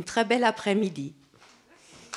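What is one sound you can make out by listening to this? A woman speaks into a microphone, amplified in a large hall.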